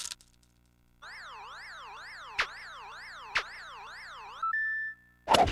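An electronic tone warbles rapidly up and down.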